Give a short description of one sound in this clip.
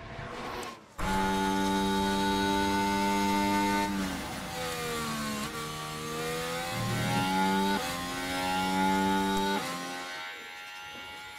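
A racing car engine whines steadily at high revs.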